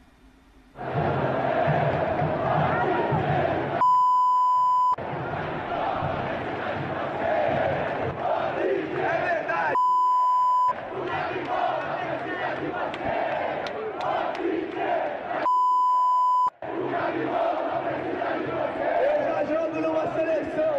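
A large crowd chants and sings loudly outdoors, heard through a broadcast.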